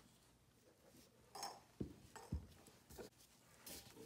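A glass bowl clinks as it is set down.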